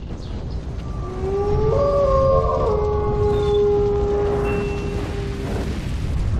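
A wolf howls with a long, drawn-out cry.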